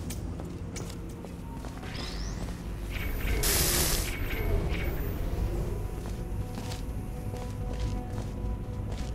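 A laser beam hums steadily.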